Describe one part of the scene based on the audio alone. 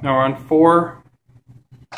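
An elevator chime dings twice.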